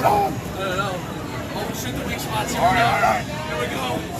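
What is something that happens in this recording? A young man shouts with excitement close by.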